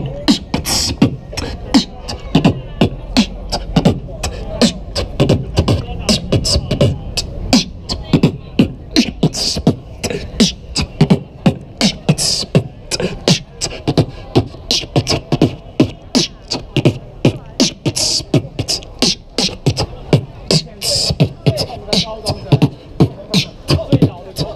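A young man beatboxes a fast, punchy rhythm close by.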